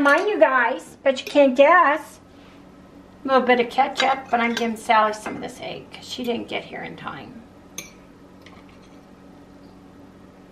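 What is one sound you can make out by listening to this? A fork scrapes on a plate.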